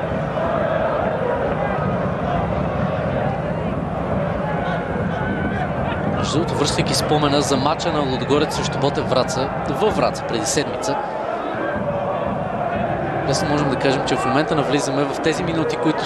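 A large crowd roars and chants steadily in an open stadium.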